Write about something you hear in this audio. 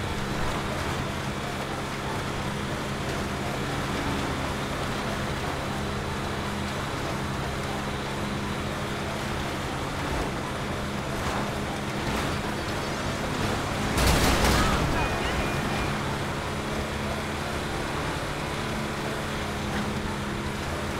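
Tyres hiss over packed snow.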